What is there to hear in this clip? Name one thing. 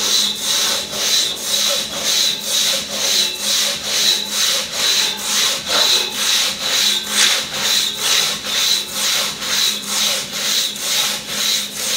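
A large hand saw cuts through a log with fast, rhythmic rasping strokes.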